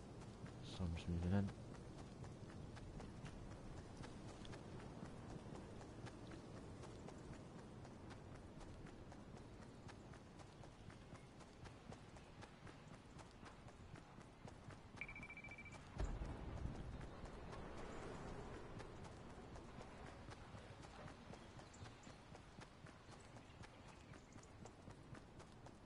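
Footsteps run steadily on a road in a video game.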